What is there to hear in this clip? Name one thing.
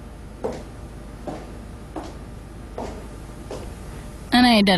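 Footsteps click on a hard floor.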